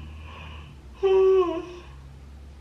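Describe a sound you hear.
A young woman yawns loudly.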